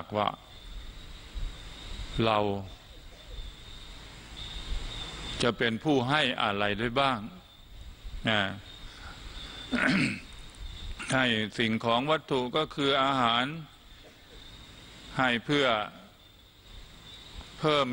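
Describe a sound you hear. An elderly man speaks calmly and slowly into a microphone, heard through a loudspeaker.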